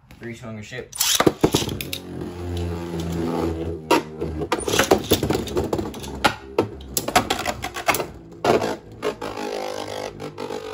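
Spinning tops whir loudly around a plastic arena.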